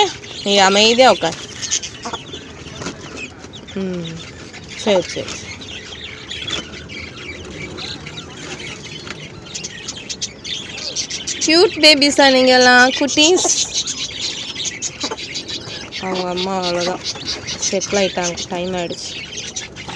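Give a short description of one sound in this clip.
A hen clucks and croons close by.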